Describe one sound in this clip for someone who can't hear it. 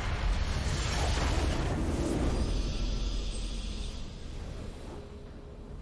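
A triumphant victory fanfare blasts and slowly fades.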